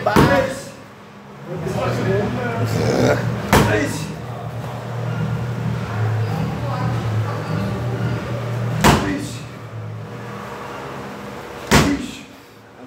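Kicks and strikes thud sharply against a padded strike shield.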